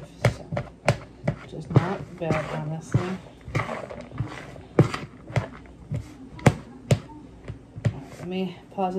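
Hands tap and knock inside a plastic tub.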